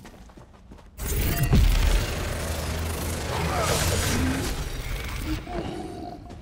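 A magic spell bursts and crackles with a loud whoosh.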